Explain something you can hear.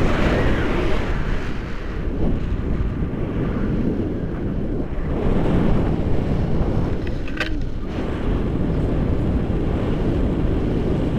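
Strong wind rushes and buffets loudly against a microphone outdoors.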